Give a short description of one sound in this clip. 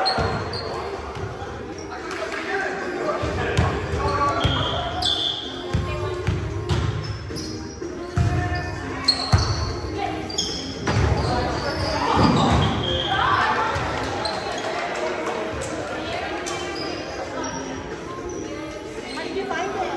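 Balls thud and bounce on a hard floor.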